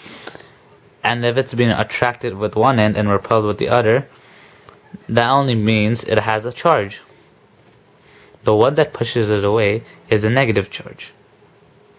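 A man talks calmly and explains, close by.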